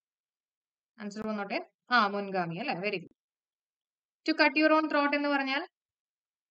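A young woman speaks calmly into a close microphone, in short bursts.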